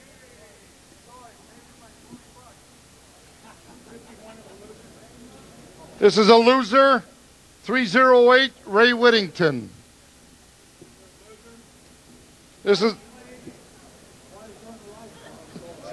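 An elderly man speaks through a microphone, at times quietly and at times loudly and animatedly.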